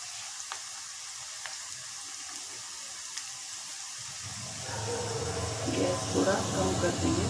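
Oil sizzles and crackles steadily as food fries.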